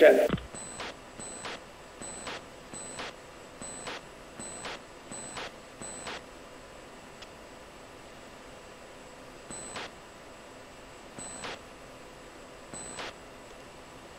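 A cockpit warning tone beeps in short repeated pulses.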